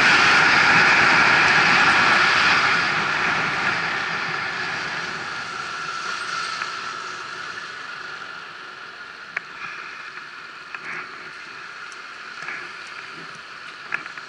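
Wind rushes past as a bicycle rides fast, then fades as it slows.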